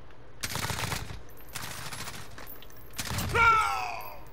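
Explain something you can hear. Gunshots fire in short, sharp bursts.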